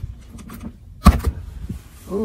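A refrigerator door latch clicks.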